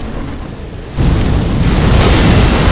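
Flames roar in a loud burst of fire.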